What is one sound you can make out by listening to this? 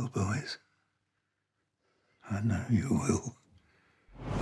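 An elderly man speaks in a low, calm voice nearby.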